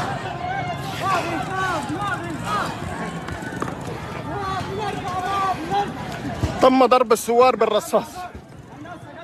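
A crowd of men shouts and chants outdoors.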